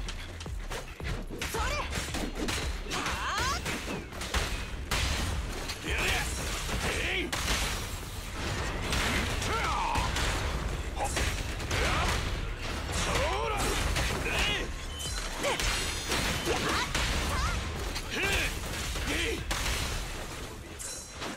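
Weapons clash and strike in rapid, punchy hits.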